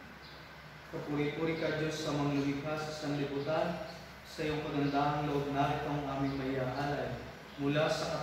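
A man chants through a microphone in an echoing room.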